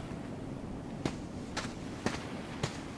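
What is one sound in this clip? Footsteps tap slowly on hard ground.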